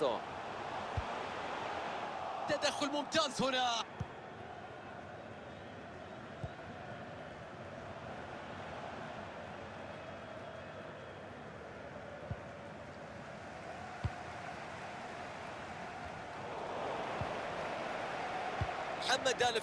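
A football is kicked with short dull thuds now and then.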